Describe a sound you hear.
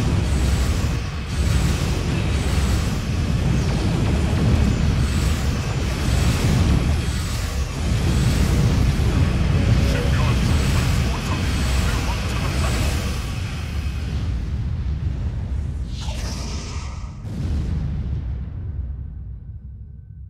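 Explosions boom with a deep rumble.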